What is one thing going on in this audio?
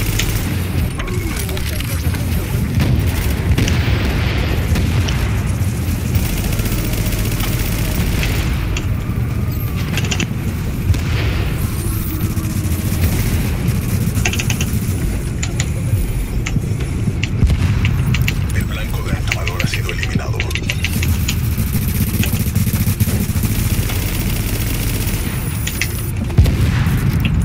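Rapid gunfire rattles again and again.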